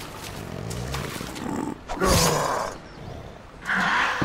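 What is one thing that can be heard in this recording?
A zombie growls hoarsely nearby.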